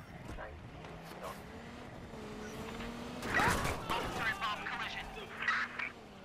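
A car engine revs and rises in pitch.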